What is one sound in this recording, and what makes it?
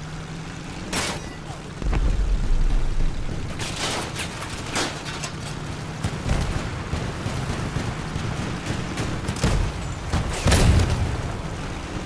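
A gun fires loud shots.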